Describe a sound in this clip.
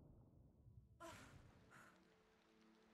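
Water splashes as a swimmer surfaces.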